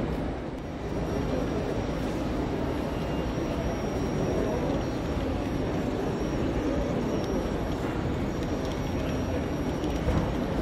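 A model diesel train hums and rattles past on its tracks.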